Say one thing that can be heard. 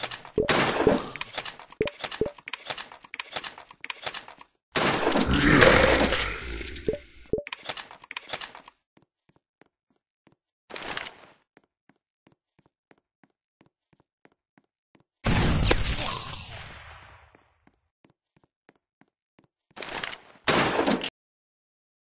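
Game gunfire crackles in rapid bursts.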